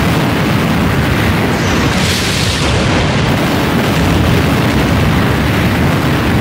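Fiery blasts roar and crackle in quick succession.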